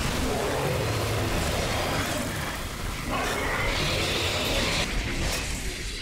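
A blast bursts with a loud crackling roar.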